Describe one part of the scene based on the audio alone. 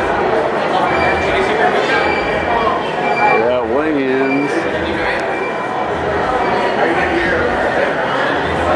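A crowd of men and women chatter loudly all around in an echoing hall.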